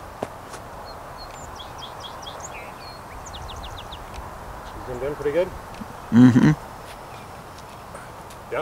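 A small model aircraft whooshes softly past overhead.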